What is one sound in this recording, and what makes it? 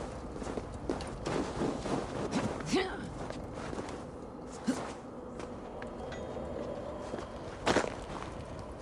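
Hands and feet scrape and thud on rock and ice while climbing.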